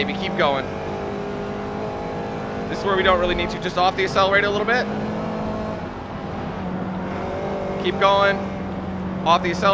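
A car engine hums steadily and changes pitch as the car speeds up and slows down.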